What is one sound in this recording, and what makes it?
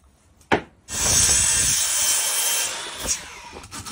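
A miter saw cuts through a wooden board.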